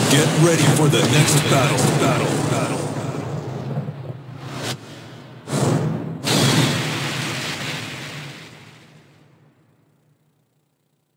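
Loud game music with whooshing effects plays and then fades out.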